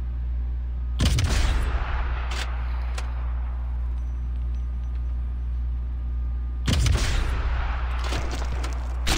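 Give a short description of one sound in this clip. A rifle fires a loud shot that echoes away.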